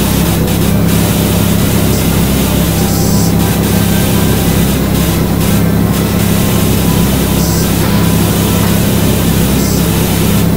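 A pressure washer sprays a steady, hissing jet of water.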